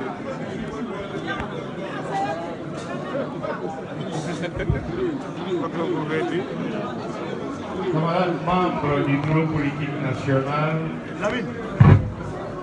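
A crowd of men and women chatter all around in a large room.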